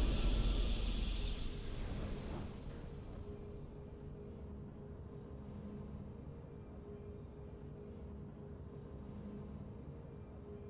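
Triumphant game music swells and then fades to a soft, steady hum.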